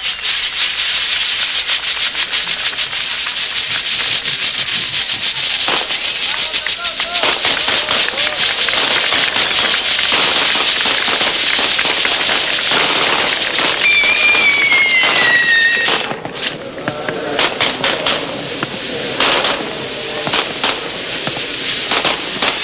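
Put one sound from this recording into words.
A crowd of men and women cheers loudly.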